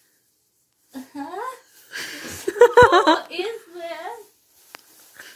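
A girl laughs and talks excitedly.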